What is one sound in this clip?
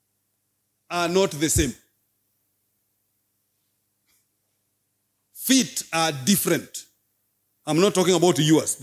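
A man speaks into a microphone in short, earnest phrases with pauses between them.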